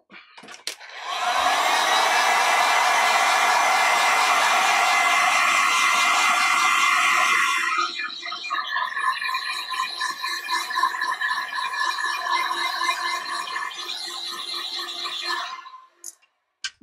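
A heat gun blows with a loud steady whir, then cuts off.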